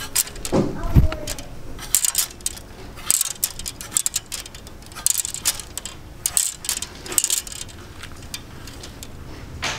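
Plastic clothes hangers click and scrape along a rail.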